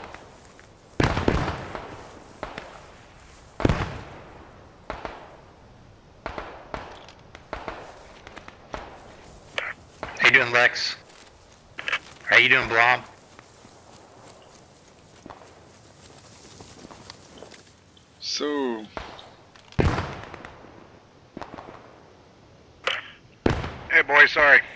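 Rifle shots crack loudly, one at a time, outdoors.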